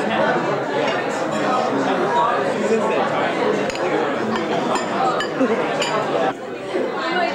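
A crowd chatters loudly all around, indoors.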